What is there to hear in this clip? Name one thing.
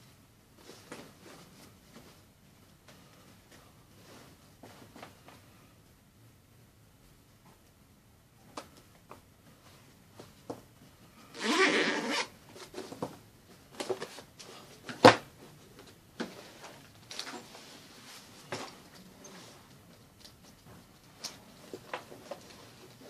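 A leather handbag rustles and creaks as hands handle it.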